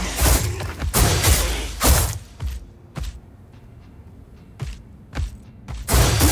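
Sharp impacts thud and crack.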